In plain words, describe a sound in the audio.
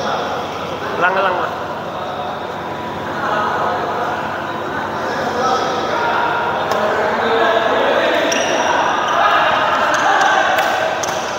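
Men call out and talk to each other across the court.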